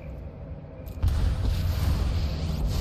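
A deep magical whoosh swells as a spell is cast.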